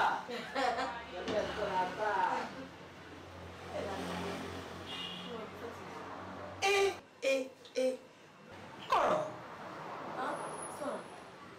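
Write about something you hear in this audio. A woman sobs and wails.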